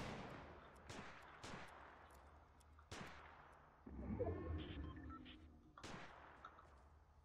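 Rifle shots crack and echo outdoors.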